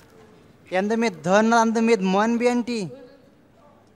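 A woman cries out loudly in a pleading, wailing voice, close by.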